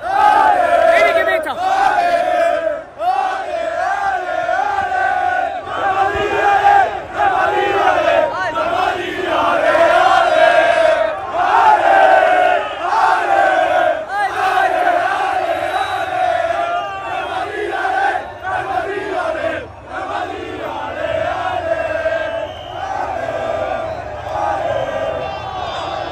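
A large crowd of fans chants and sings loudly close by.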